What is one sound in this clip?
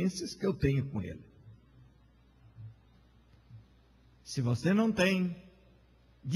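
A man speaks with emphasis into a microphone, heard through a loudspeaker in a large room.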